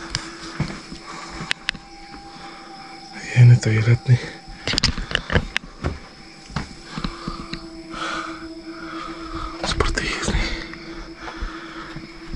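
A heavy wooden door creaks and bumps as it is pushed.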